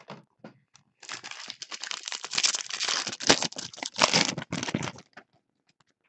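A foil wrapper crinkles loudly as it is torn open.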